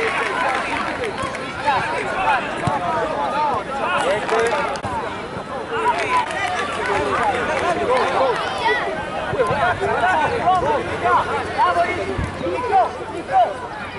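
A football thuds as a child kicks it.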